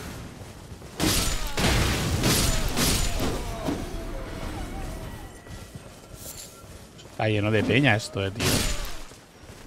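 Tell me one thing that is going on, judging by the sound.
Swords clash and slash in rapid bursts.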